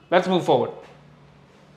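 A young man speaks briefly and clearly, close to a microphone.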